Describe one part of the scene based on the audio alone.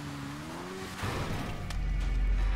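A motorcycle crashes with a thud.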